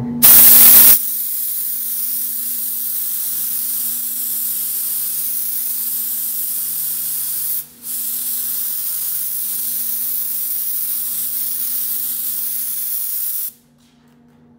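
A paint spray gun hisses steadily with a rush of air.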